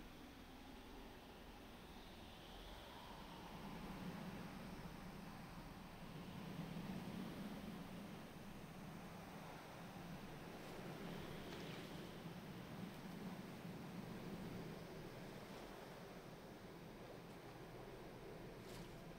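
Water laps and splashes gently.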